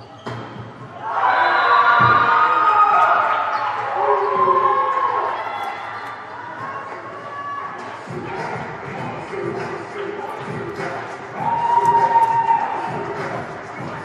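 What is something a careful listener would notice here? A crowd cheers loudly in an echoing hall.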